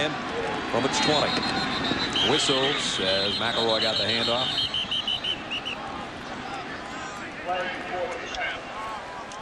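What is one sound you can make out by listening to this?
A stadium crowd cheers and roars outdoors.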